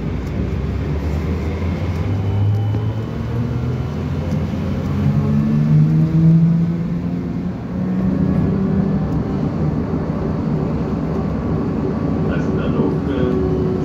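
Wheels rumble steadily beneath a moving vehicle.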